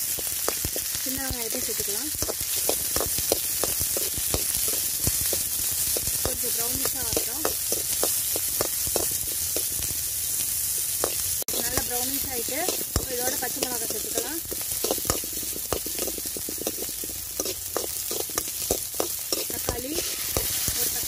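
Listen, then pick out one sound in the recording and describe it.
A metal spoon scrapes and clatters against a metal pan while stirring.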